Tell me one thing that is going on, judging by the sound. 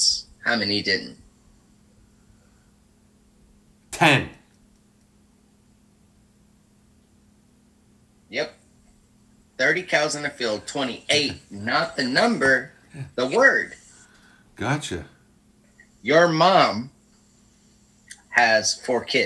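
A middle-aged man talks with a deep voice over an online call.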